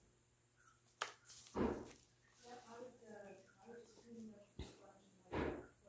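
Hands knock and rub a clay figure as it is picked up and turned.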